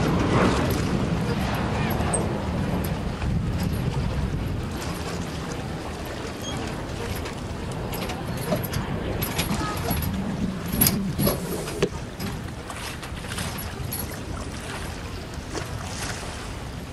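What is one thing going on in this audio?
Waves lap gently against a raft on open water.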